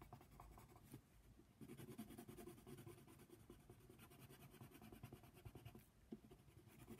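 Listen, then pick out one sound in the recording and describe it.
A pencil scratches rapidly across paper.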